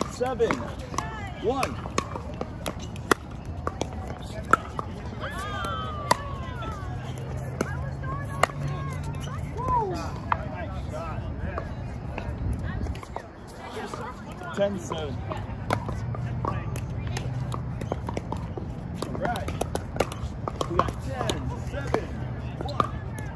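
Adults talk and call out on the courts nearby.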